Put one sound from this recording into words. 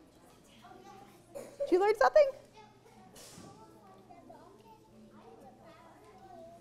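Children murmur and chatter softly.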